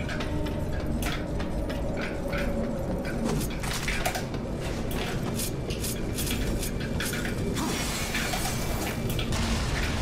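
A blade clangs and slashes in quick strikes.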